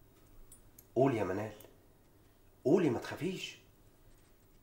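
A man speaks sharply close by.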